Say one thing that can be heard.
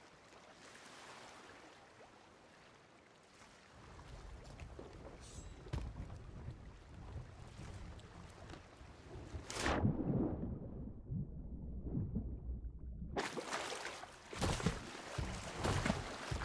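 Waves wash and lap.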